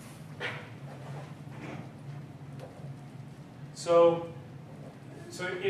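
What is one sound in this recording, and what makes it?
A man speaks in short bursts, as if lecturing.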